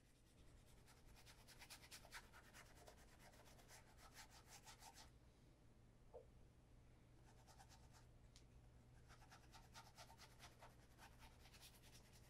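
A cloth rubs polish onto a leather shoe with a soft, steady scrubbing.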